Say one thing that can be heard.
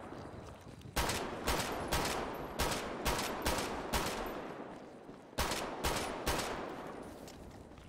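A pistol fires a rapid series of loud shots that echo outdoors.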